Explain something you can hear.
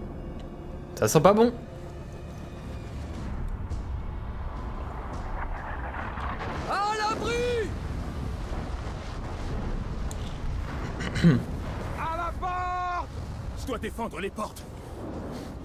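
A young man talks into a microphone in short bursts.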